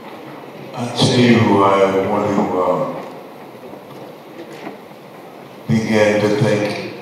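An elderly man speaks calmly into a microphone over a loudspeaker.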